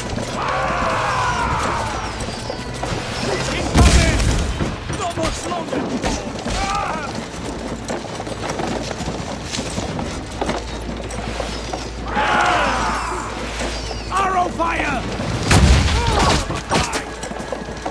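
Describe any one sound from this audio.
A heavy wooden cart rumbles over the ground.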